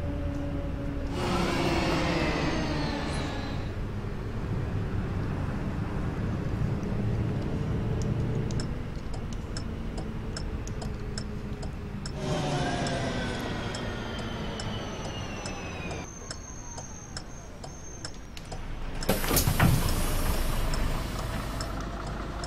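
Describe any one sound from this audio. A bus engine hums and whines as it drives and slows.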